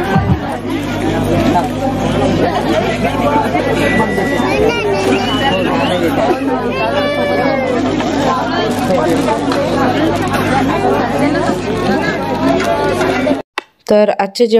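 A crowd of women chatters and laughs nearby.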